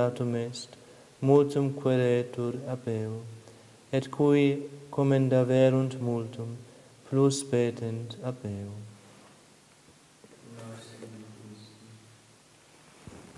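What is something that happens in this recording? A man chants in a steady sung voice, echoing in a large hall.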